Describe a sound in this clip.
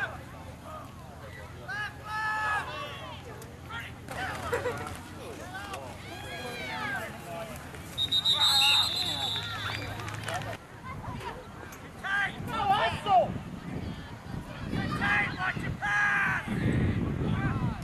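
A crowd of spectators cheers and calls out from a distance.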